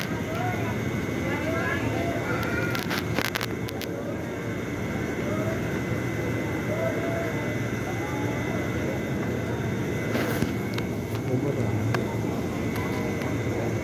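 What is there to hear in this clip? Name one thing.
A train rumbles past close by.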